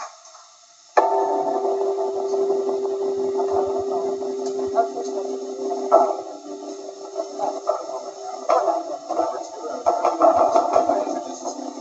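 Electric guitars play loudly through amplifiers.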